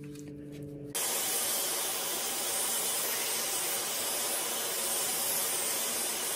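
A belt grinder runs with a steady whirring hiss.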